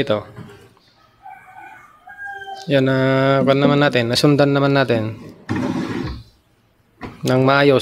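A wooden drawer slides on its runners and bumps shut.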